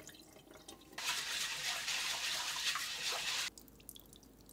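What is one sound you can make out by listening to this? Water runs and splashes into a bowl.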